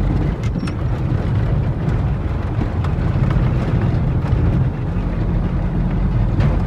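Tyres crunch and rattle over a rough gravel road.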